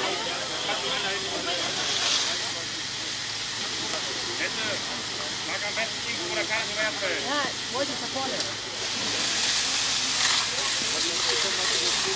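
A fire hose sprays water with a steady, rushing hiss.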